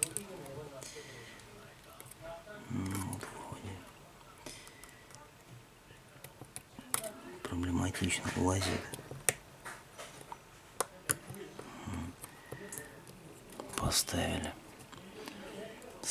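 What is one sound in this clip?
Small plastic parts click and tap up close.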